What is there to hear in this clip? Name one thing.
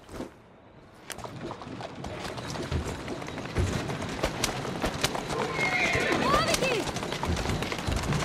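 Carriage wheels rumble and rattle over a stone street.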